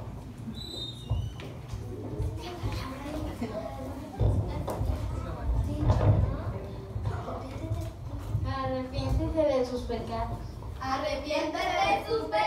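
Young girls sing together.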